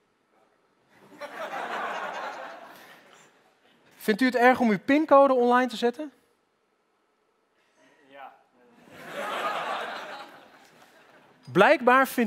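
A studio audience laughs and cheers loudly.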